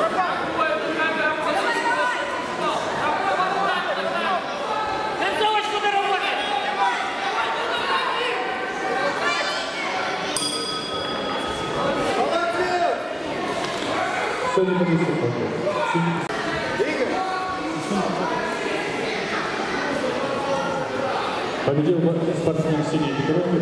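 A woman referee calls out commands.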